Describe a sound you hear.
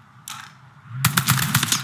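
A gun fires a rapid burst of shots.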